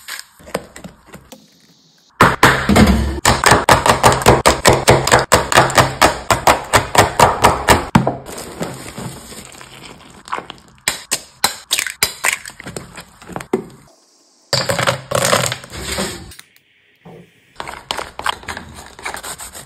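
A spoon stirs thick batter.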